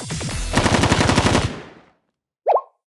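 A cartoon explosion booms and rumbles, then fades.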